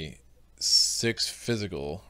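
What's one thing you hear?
A card slides across a table.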